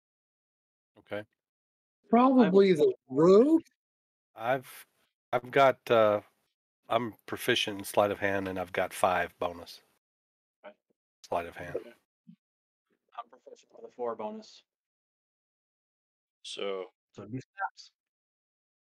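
Men talk with animation over an online call.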